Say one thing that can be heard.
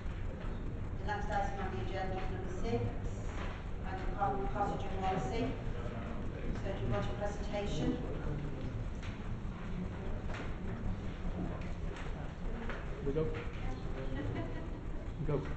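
A man speaks calmly, heard through a microphone.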